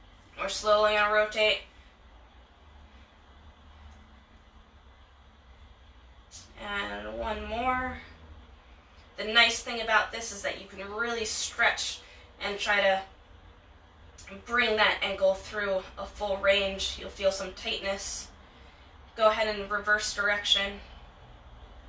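A young woman speaks calmly and clearly, close by, explaining in bursts with pauses.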